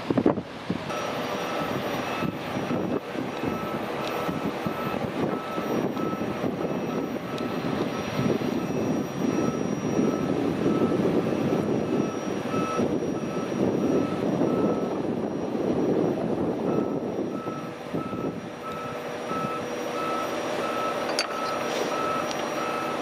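A heavy machine engine rumbles steadily close by.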